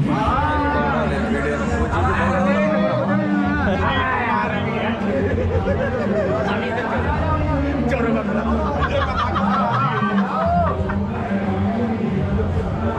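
A crowd of men and women talk and call out nearby.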